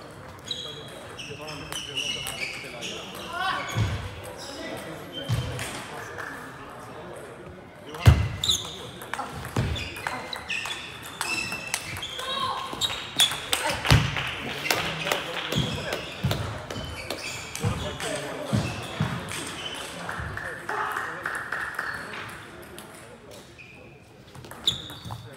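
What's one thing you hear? A table tennis ball clicks back and forth across a table in a large echoing hall.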